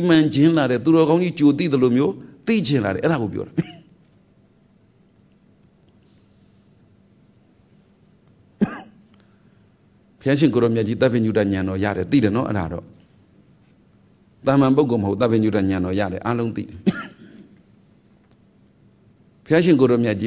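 A middle-aged man speaks calmly and slowly, close to a microphone, with long pauses.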